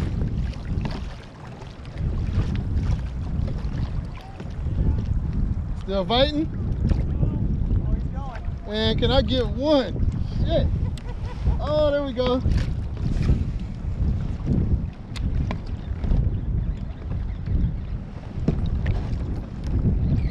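Wind blows steadily across a microphone outdoors.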